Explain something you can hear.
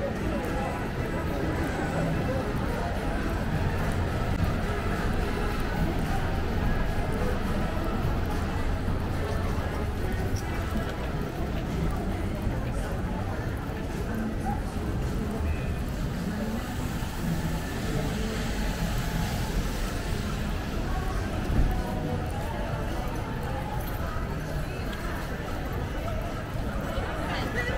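A busy street hums with an outdoor crowd murmuring.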